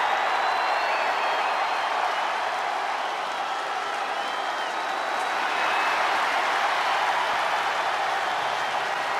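Fans whistle shrilly from the crowd.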